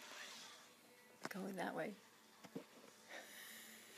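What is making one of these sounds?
A toy car rolls across a rug.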